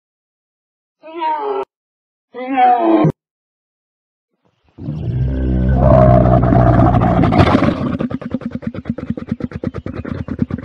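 A camel grunts and groans loudly.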